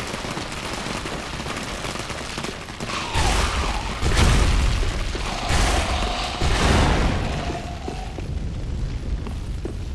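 Armored footsteps clank on stone.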